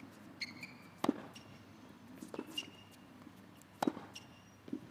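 A tennis ball is struck hard by a racket outdoors.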